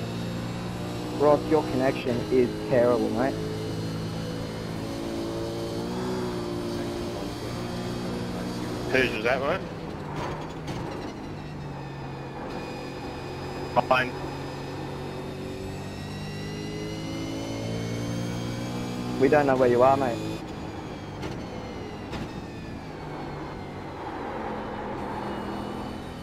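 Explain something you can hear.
A racing car engine drones and shifts pitch steadily.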